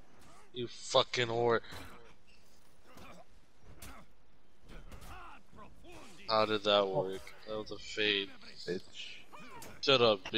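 Steel blades clash and ring in a sword fight.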